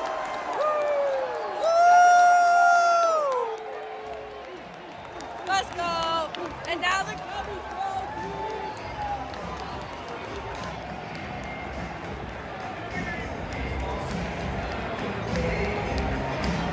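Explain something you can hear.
A large crowd cheers and chatters in an open stadium.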